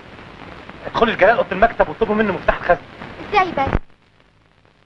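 A young woman speaks urgently nearby.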